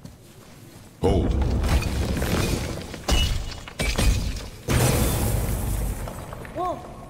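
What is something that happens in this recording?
Heavy crashes and thuds ring out as a large creature is struck.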